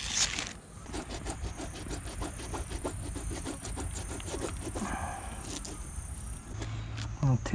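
A stiff brush scrubs a rubber boot in quick strokes.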